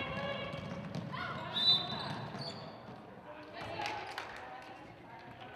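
Young women call out to one another across a large echoing gym.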